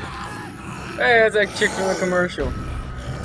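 A zombie growls and snarls loudly.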